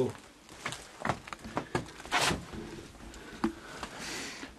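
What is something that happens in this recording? Debris crunches and rustles underfoot.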